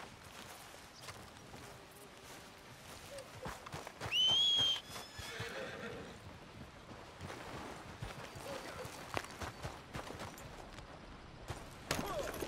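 Footsteps swish through grass and dirt.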